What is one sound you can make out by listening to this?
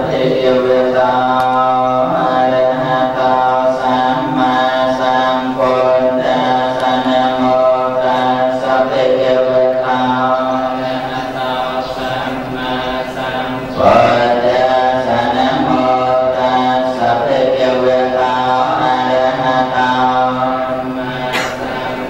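A group of men chant together in a steady, droning unison.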